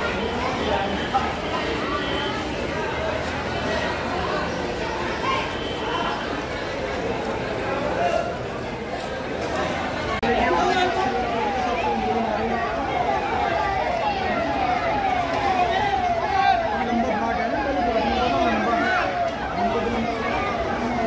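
A crowd of people chatter and call out nearby, outdoors.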